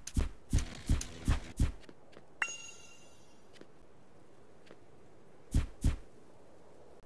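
Blocks are placed with quick, soft thuds in a game.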